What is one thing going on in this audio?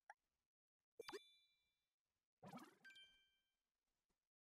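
A game menu chimes brightly as a choice is confirmed.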